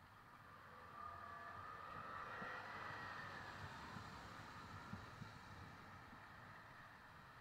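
A car drives slowly past on a wet road, its tyres hissing.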